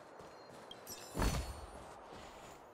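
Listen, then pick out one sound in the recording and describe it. A chest opens with a sudden chime.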